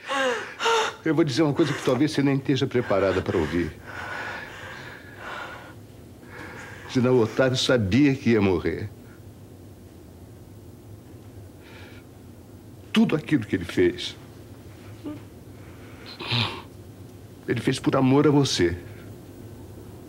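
A middle-aged man speaks earnestly and pleadingly, close by.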